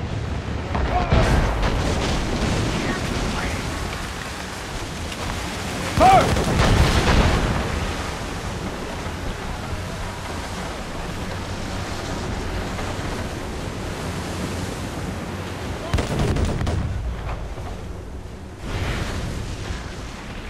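Cannons boom loudly in heavy bursts.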